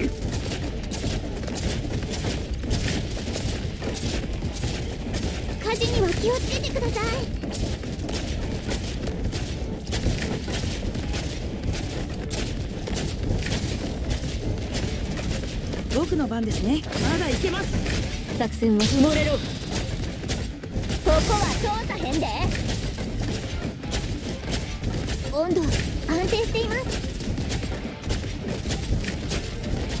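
Rapid hits, slashes and small blasts clash in a fast battle.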